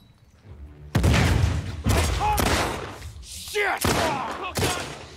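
Gunshots fire loudly in quick bursts.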